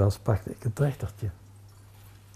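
Liquid pours and gurgles into a glass bottle.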